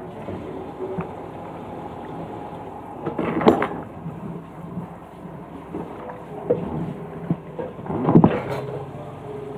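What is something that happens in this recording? Dishes clatter and clink as they are set down.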